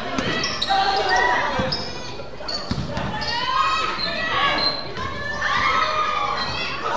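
A crowd of young people shouts and cheers loudly in a large echoing hall.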